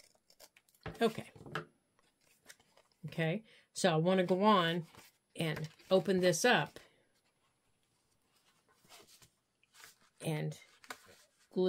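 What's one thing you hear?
Paper rustles as it is handled and laid down.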